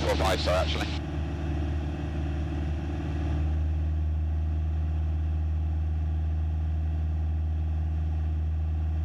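A single-engine piston light aircraft drones steadily in cruise, heard through a headset intercom.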